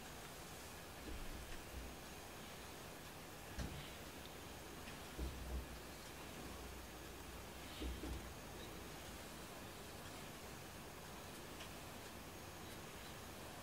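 A hand softly strokes a cat's fur.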